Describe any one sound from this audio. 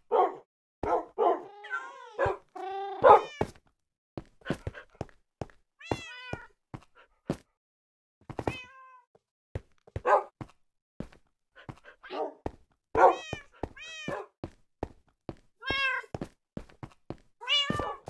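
Wolves whine and yelp nearby.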